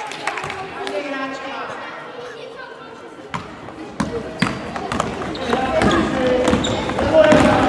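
Sneakers squeak on the hall floor.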